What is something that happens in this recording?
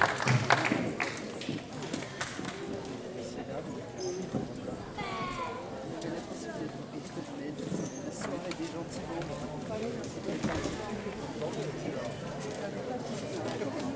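An audience murmurs in a large outdoor space.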